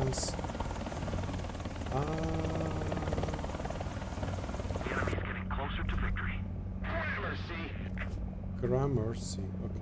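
A helicopter's rotor thumps steadily with a low engine drone.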